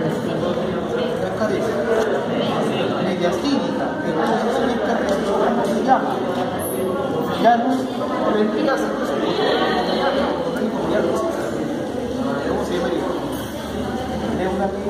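People murmur and chatter in the background.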